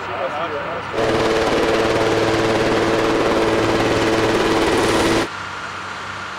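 A helicopter's rotor and engine roar loudly overhead.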